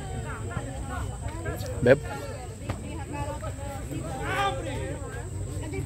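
Men shout and call to each other across an open outdoor field.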